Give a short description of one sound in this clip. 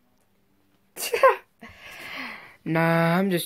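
A teenage boy laughs.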